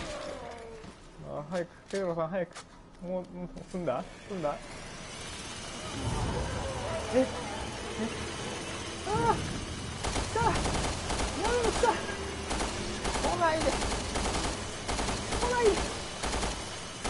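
A young man talks and laughs with animation close to a microphone.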